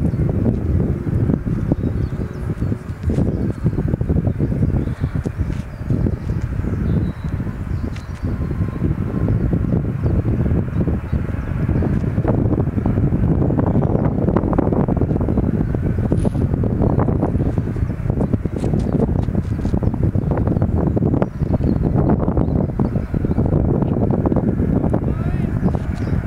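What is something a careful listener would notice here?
A twin-engine jet airliner taxis in the distance with a low engine whine.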